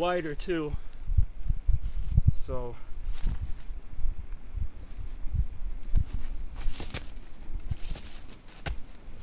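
A wooden stake thuds repeatedly into the ground.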